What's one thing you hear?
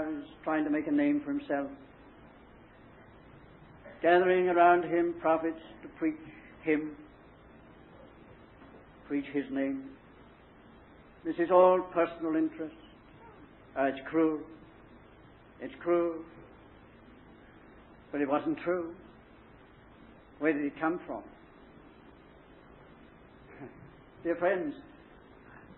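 An elderly man speaks calmly in short phrases, heard through an old, muffled recording.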